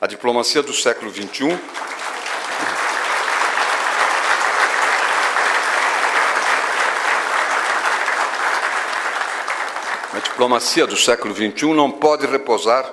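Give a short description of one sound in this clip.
An elderly man speaks calmly into a microphone in a large, echoing room.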